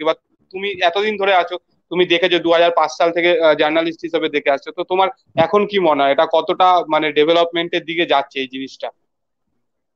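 A young man speaks with animation over an online call.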